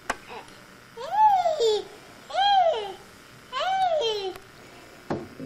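A baby babbles and squeals with high, gliding cries.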